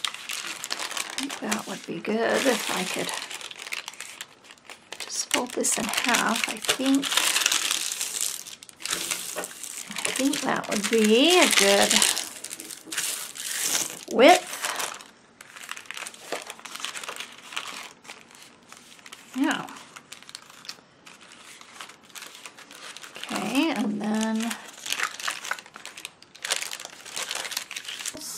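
Thin paper crinkles and rustles in hands.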